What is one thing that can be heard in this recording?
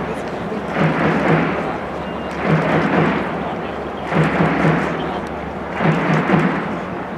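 A large crowd chants and cheers in rhythmic bursts in a big echoing stadium.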